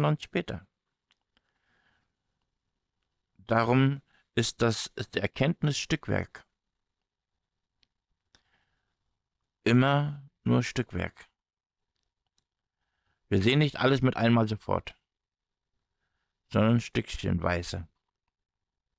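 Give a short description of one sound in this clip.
A man speaks calmly and closely through a microphone, in short bursts with pauses.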